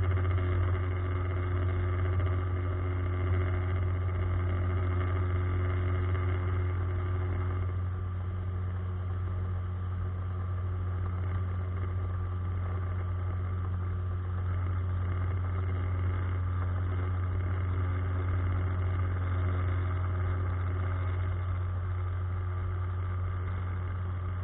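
Water laps softly against a boat's hull.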